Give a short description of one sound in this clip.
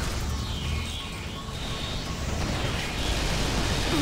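Electricity crackles and hums from an energy barrier.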